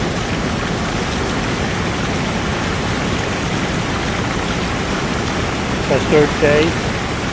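Heavy rain pours steadily outdoors, splashing on wet ground.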